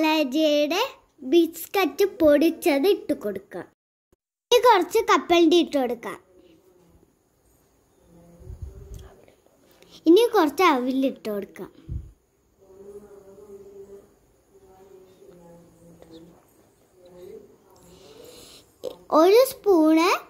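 A young girl speaks brightly and with animation, close by.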